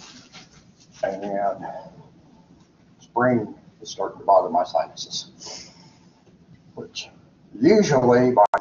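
An elderly man speaks calmly, slightly muffled.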